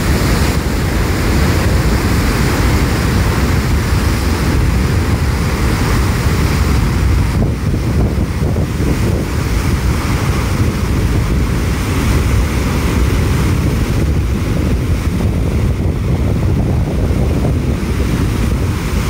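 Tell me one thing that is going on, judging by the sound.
Water gushes and roars loudly as it churns into a river.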